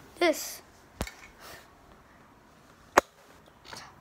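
Plastic toy bricks click and knock together.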